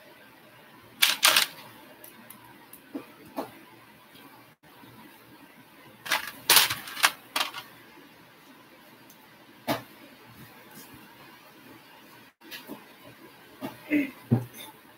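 Small plastic bricks click and snap together in someone's hands.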